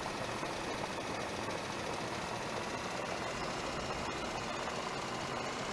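A heavy vehicle's engine rumbles steadily.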